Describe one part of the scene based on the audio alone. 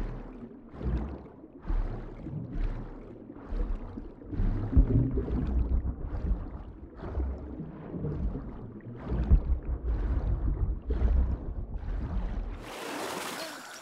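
Water churns and whooshes in rhythmic surges, heard muffled underwater.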